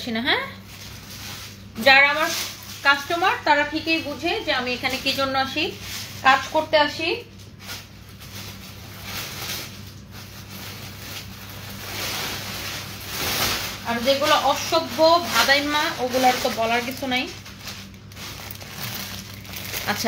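Clothes rustle as they are folded.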